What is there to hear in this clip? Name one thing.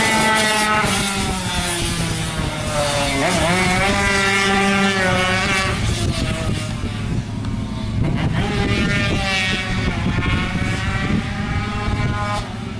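A small motorcycle engine revs high, its pitch rising and falling as it shifts gears.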